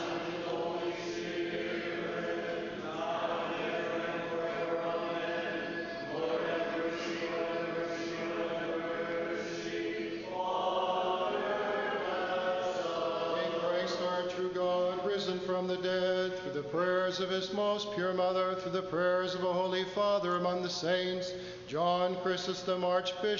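A man chants steadily through a microphone in a large echoing hall.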